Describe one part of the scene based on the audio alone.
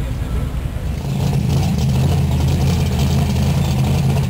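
A muscle car's engine rumbles deeply close by as it drives slowly past.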